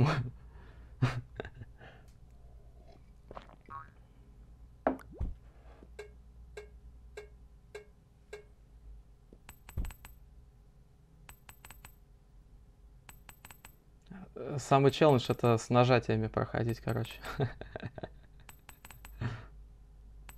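Short electronic game blips sound repeatedly.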